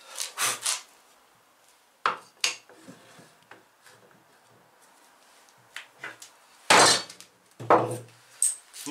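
Wood knocks and clatters on a workbench.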